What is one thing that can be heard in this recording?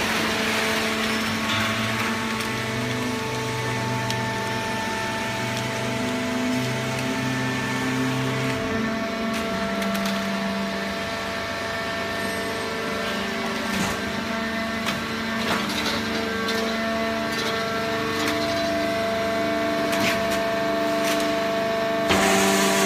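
Industrial machinery hums and drones steadily.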